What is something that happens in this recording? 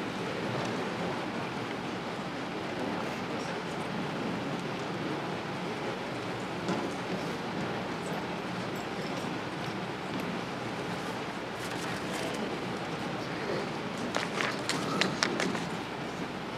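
A crowd of children murmurs softly in a large echoing hall.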